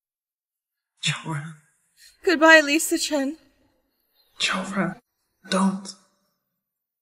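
A young man calls out urgently.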